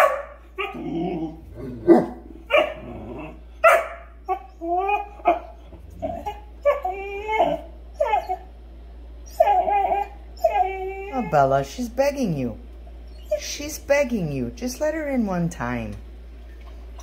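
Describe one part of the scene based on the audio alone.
A dog whines in high, rising and falling cries close by.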